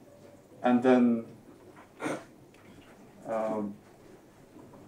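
A man speaks in short phrases nearby.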